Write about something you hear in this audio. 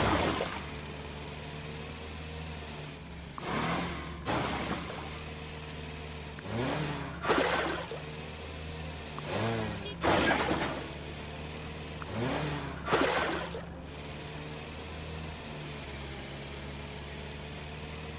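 A small tractor engine hums steadily.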